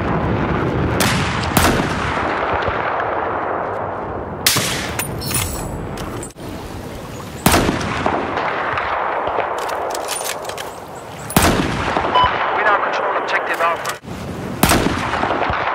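A sniper rifle fires sharp, loud shots, each followed by a long echoing rumble.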